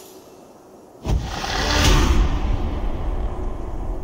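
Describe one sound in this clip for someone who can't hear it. A strong wind howls through falling snow.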